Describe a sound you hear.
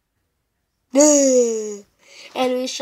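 A young boy shouts loudly into a headset microphone.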